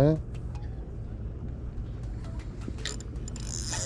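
A fishing reel clicks and whirs as it is handled.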